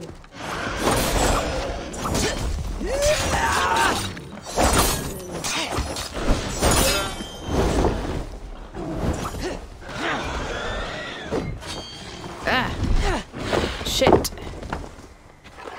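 Blades strike and clash in quick bursts.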